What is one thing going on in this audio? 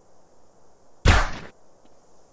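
A gunshot cracks once.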